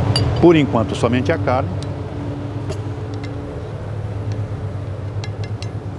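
Meat pieces tumble into a pan.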